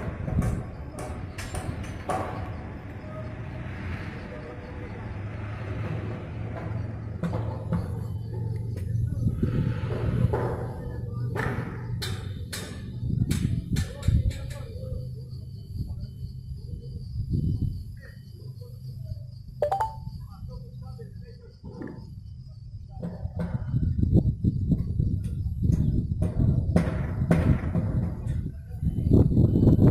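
Construction machinery rumbles steadily outdoors.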